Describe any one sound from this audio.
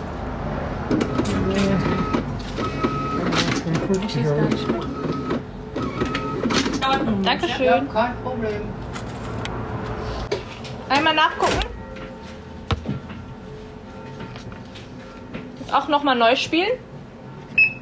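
A young woman speaks close to a phone microphone.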